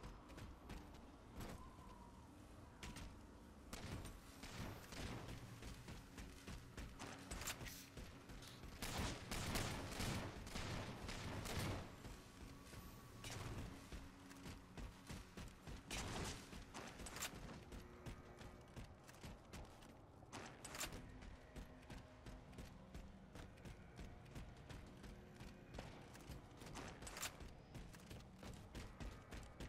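Rifle gunshots fire in quick bursts.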